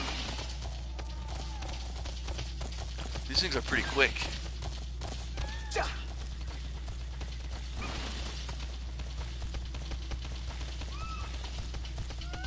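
Clawed feet patter quickly over grass.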